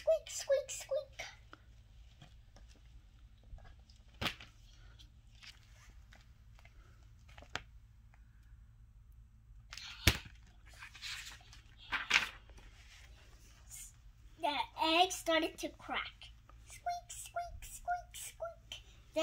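A young girl speaks close by, reading aloud.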